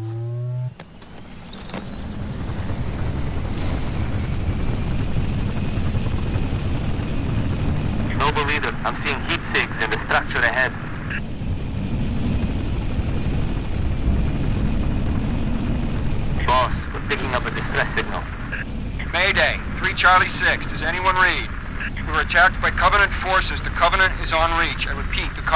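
An aircraft engine roars steadily with a low rumble.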